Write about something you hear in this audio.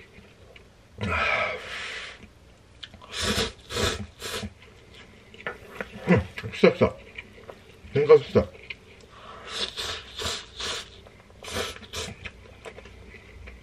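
A man slurps noodles loudly, close by.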